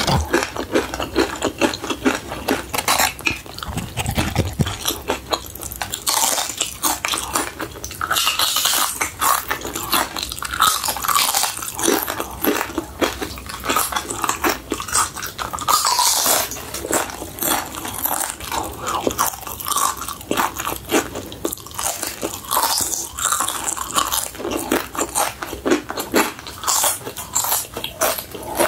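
Tortilla chips crunch loudly and crisply close to a microphone.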